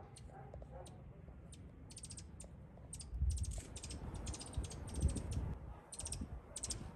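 Wind gusts outdoors and rustles leaves.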